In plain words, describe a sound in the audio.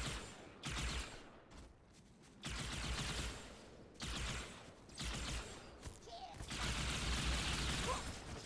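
Twin energy guns fire in rapid, roaring, crackling bursts.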